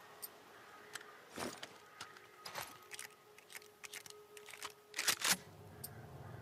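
A gun clicks and rattles as it is handled.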